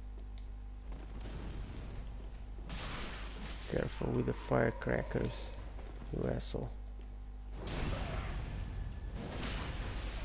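A sword strikes and clashes in a fight.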